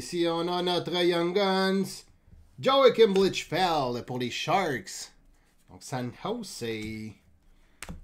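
Cards slide and flick against each other.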